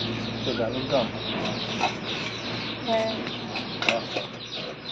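A metal lid clinks against a steel pot.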